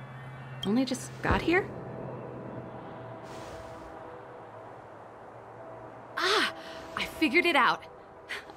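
A young woman speaks with animation, close to the microphone.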